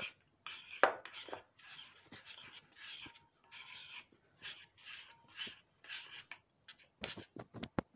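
Fingers rub and crumble flour in a bowl with a soft rustle.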